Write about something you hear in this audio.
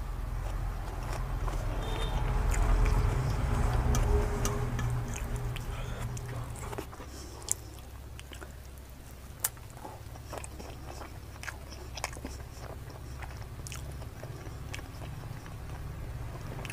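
Fingers squelch and pick through soft food on a metal plate.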